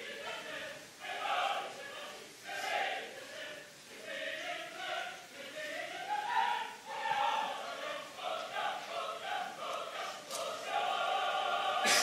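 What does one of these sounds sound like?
A man sings loudly in a powerful operatic voice.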